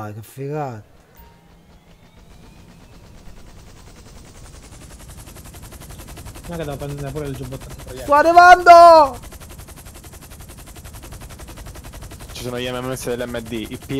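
A helicopter's rotor thumps steadily and grows louder as the helicopter lifts off.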